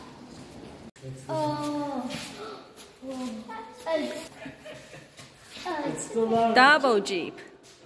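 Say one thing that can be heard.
Young children talk excitedly close by.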